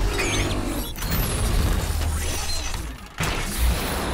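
Energy beams hum and crackle with a shimmering whoosh.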